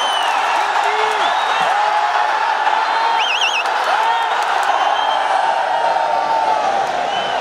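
A large stadium crowd cheers and shouts.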